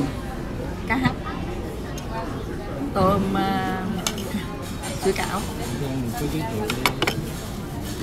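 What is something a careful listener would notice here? Cutlery clinks on plates.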